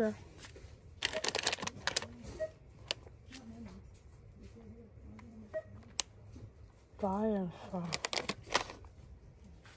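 A plastic snack bag crinkles in a hand.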